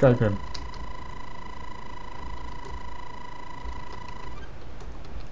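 A video game's electronic beep tone sounds steadily as a timer tallies into points.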